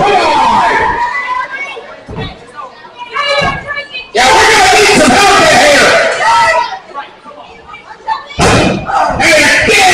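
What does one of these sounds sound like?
A crowd cheers and shouts in a large room.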